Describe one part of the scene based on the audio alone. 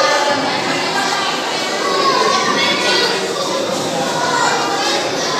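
A crowd of young children chatter and call out in an echoing hall.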